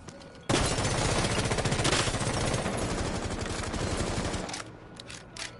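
A rifle fires in rapid bursts close by.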